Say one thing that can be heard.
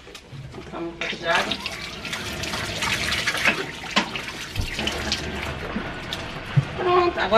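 Water runs from a tap and splashes into a metal sink.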